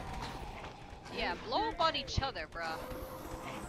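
A young woman talks into a microphone with animation.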